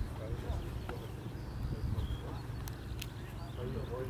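Men talk quietly nearby outdoors.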